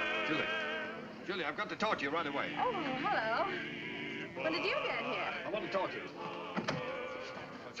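A crowd chatters and laughs.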